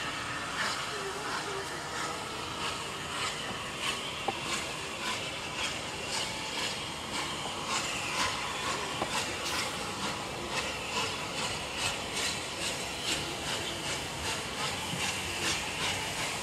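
A steam locomotive chuffs steadily as it pulls in slowly.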